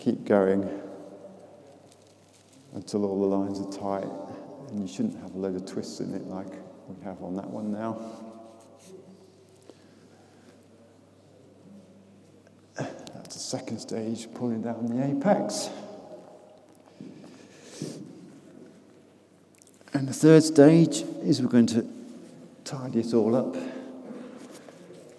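A man speaks calmly to a group in a large echoing hall.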